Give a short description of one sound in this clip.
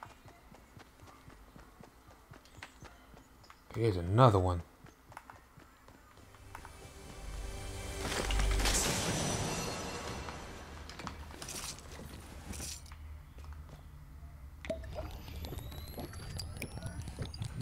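Footsteps patter quickly on hard floors.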